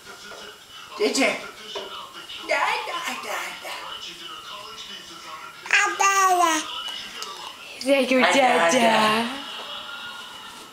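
A baby babbles and coos close by.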